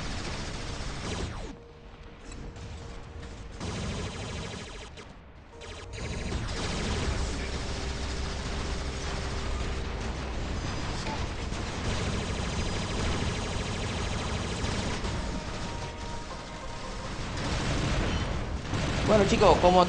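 Heavy machine guns fire in rapid bursts.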